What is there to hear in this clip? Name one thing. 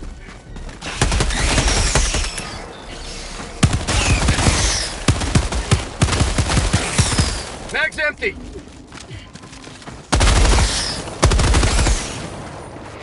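Rapid gunfire blasts in loud bursts.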